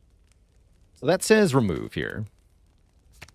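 A young man speaks briefly with animation, close to a microphone.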